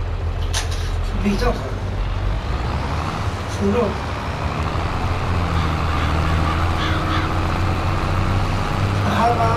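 A tractor engine rumbles steadily as the tractor drives along.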